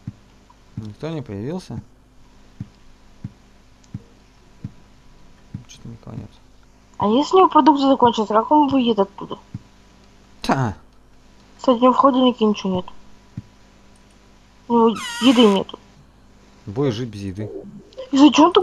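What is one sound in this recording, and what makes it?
A young man talks with animation into a close headset microphone.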